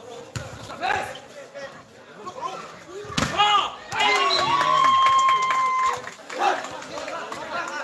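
A volleyball is struck hard with a hand.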